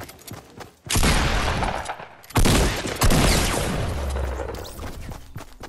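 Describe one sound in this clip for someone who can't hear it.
Gunshots bang loudly in quick bursts.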